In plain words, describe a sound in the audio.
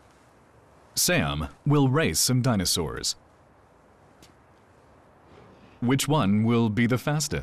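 A man speaks clearly and calmly, close by.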